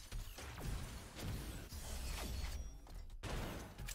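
Jet thrusters roar in bursts.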